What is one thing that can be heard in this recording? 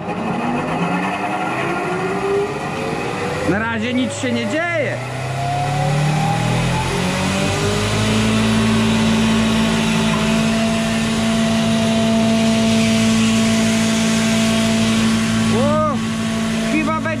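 A belt-driven electric hammer mill whirs, grinding grain.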